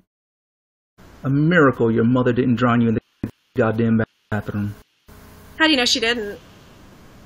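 A young woman talks casually over an online call.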